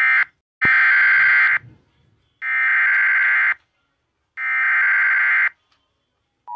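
Three harsh buzzing electronic data bursts play through a small speaker.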